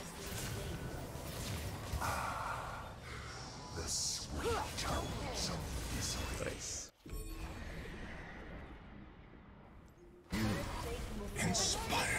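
Game spells crackle and whoosh in a fight.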